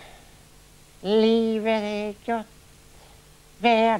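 A man speaks loudly and with animation close to a microphone.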